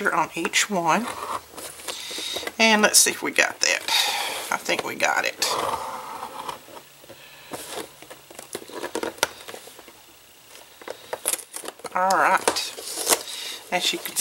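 A stylus scrapes along cardboard as it scores a line.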